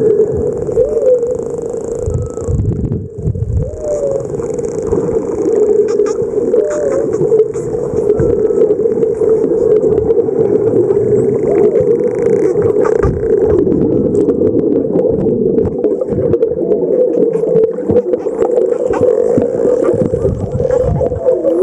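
Dolphins whistle and chirp underwater.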